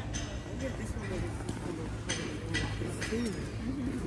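Footsteps tap on a brick pavement nearby.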